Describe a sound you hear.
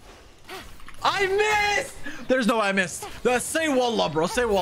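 A young man talks excitedly and loudly into a close microphone.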